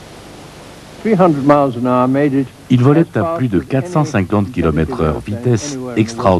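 An elderly man speaks calmly and clearly, close to a microphone.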